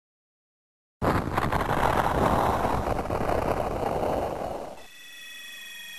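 A video game explosion effect roars and fades.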